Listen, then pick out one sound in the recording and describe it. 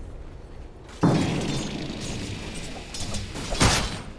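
Game spells crackle and burst during a fight.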